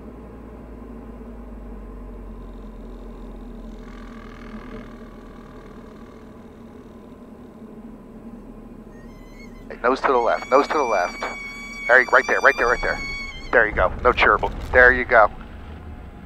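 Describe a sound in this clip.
An aircraft engine drones steadily in the cabin.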